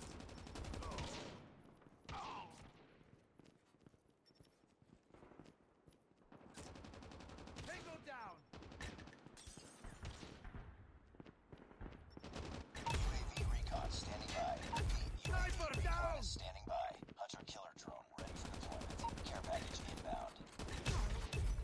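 A rifle fires sharp, loud shots now and then.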